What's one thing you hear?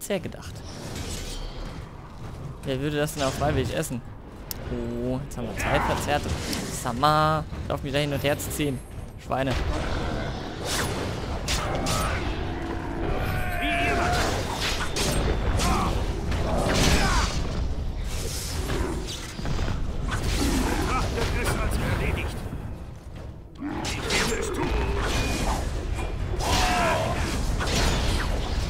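Swords clash and strike in a game battle.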